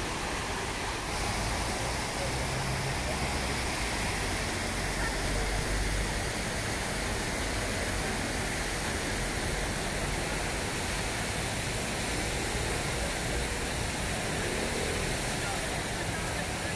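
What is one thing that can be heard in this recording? A fountain splashes steadily outdoors.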